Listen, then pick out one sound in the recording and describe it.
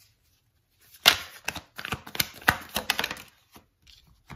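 Playing cards are shuffled with quick, crisp riffling.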